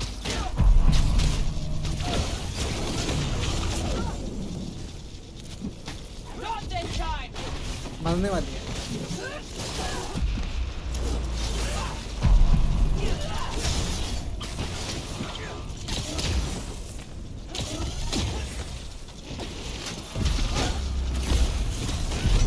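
Blows and impacts thud and crash in a fight.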